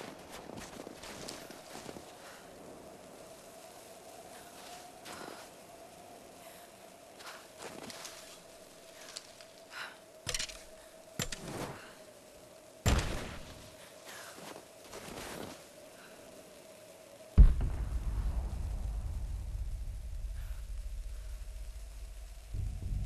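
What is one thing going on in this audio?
Footsteps crunch through snow and rustle brush.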